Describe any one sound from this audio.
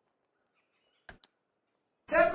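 A golf club strikes a ball with a short crack.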